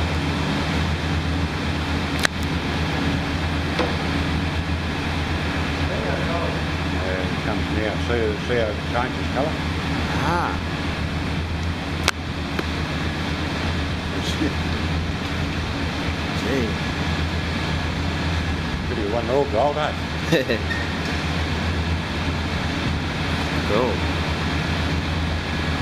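A furnace roars and hums steadily.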